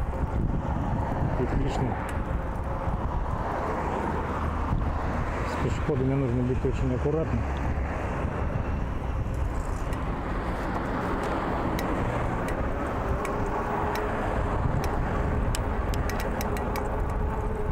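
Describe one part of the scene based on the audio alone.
Bicycle tyres hum on a paved path.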